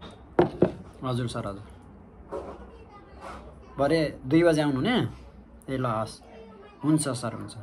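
A young man talks calmly on a phone, close by.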